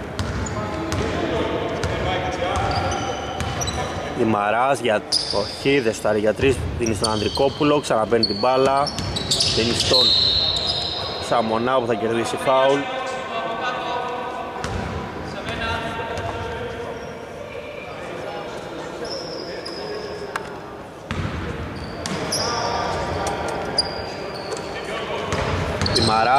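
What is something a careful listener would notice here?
Basketball shoes squeak sharply on a wooden floor in a large echoing hall.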